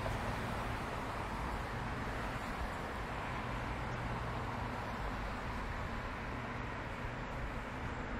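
Traffic rumbles steadily along a nearby street outdoors.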